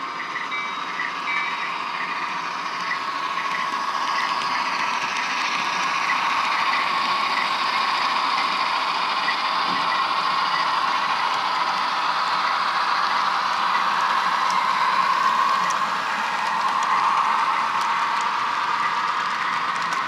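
A model train's motors whine steadily as the locomotives pass.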